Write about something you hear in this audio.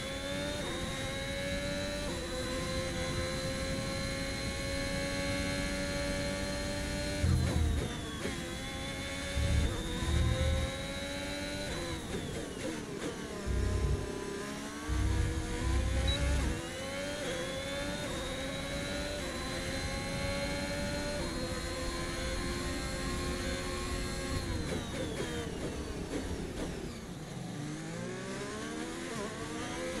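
A racing car engine screams at high revs, dropping in pitch with each gear change and rising again.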